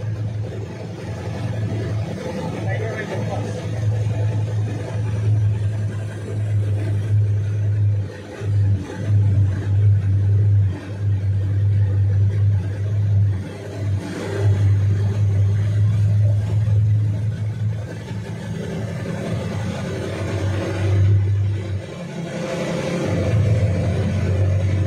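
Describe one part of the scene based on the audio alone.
A vehicle engine hums steadily nearby.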